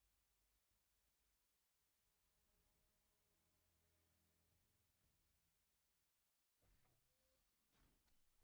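Heavy metal boots clank on a metal floor.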